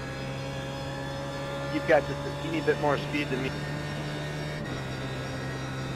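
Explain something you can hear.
A racing car engine hums steadily at high revs.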